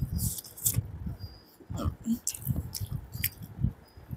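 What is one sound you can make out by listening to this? Fingers squish and mix rice with curry close to a microphone.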